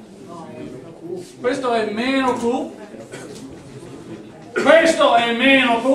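A man lectures aloud, speaking steadily with pauses.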